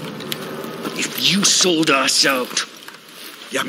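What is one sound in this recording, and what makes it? A man speaks tensely in a low, rough voice, close by.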